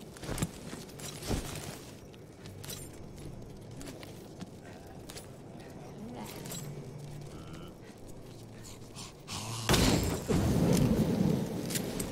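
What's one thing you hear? Weapons clash and bodies splatter in a fight.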